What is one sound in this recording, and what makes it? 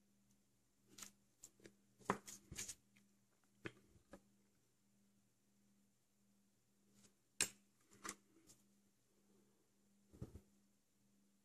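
Small plastic pieces click and tap softly as they are handled.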